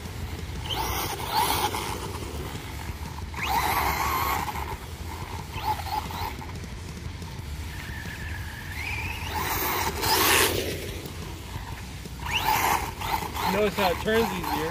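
A small electric motor whines as a toy car speeds over dirt.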